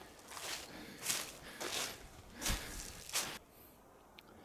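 Footsteps crunch over frozen ground and dry brush.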